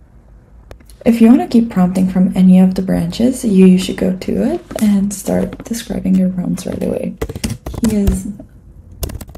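A young woman talks calmly into a microphone, close by.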